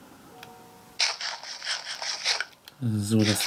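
A crunchy chewing sound plays in short bursts.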